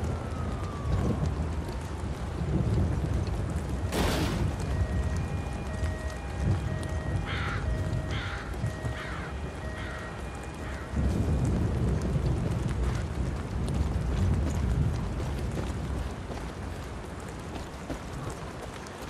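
Footsteps thud and crunch steadily on the ground.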